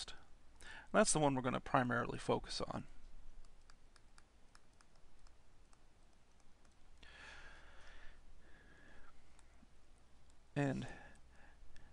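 A pen taps and scratches faintly while writing.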